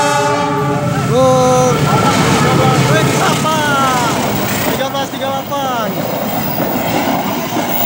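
A train rumbles and clatters past close by.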